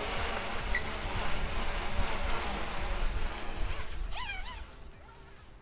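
A pressure washer sprays water with a loud, steady hiss.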